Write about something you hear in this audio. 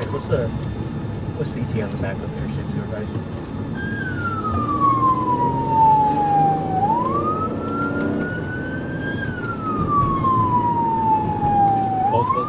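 A car engine hums and tyres roll on the road.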